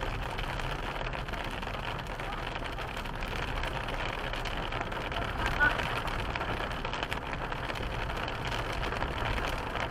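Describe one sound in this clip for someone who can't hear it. A car's tyres hiss on a wet road.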